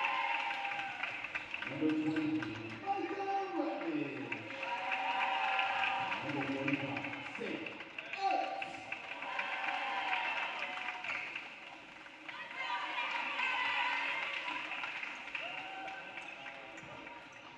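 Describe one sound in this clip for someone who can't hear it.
A group of young women chant and shout cheers loudly in an echoing hall.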